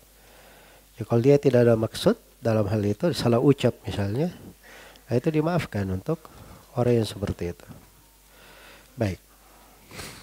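A man speaks calmly into a close microphone, reading out.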